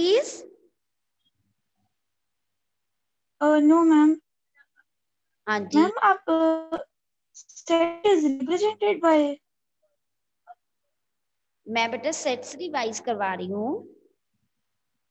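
A woman speaks calmly and closely into a clip-on microphone, in short phrases with pauses.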